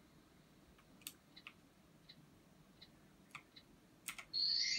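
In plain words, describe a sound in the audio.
Short clicks and taps come from a video game.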